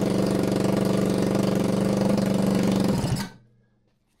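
A dirt bike engine idles loudly, then cuts off.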